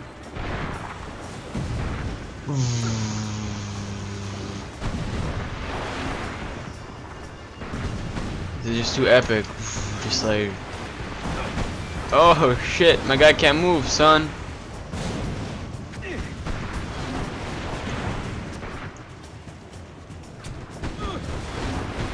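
A heavy gun fires repeatedly with booming blasts.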